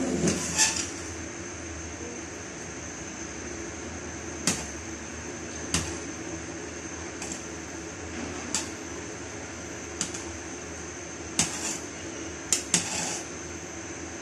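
A ladle scrapes and knocks against a metal pot while stirring thick porridge.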